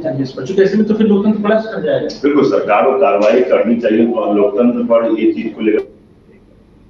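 A man speaks steadily into a microphone, close by.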